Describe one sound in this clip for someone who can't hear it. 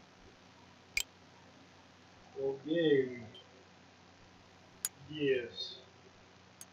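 Short electronic menu tones chirp.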